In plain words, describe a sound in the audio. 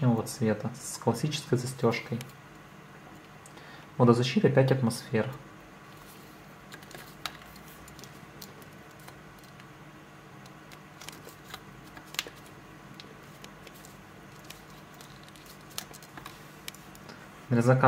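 Hands handle a leather watch strap with faint soft clicks and rustles.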